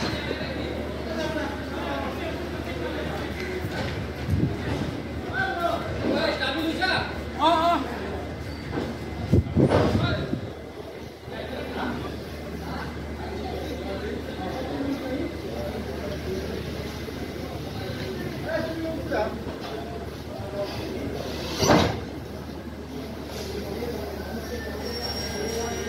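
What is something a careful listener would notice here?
A train rolls slowly past with a low, steady rumble.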